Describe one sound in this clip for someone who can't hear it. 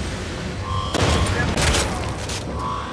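A heavy blow lands with a wet crunch.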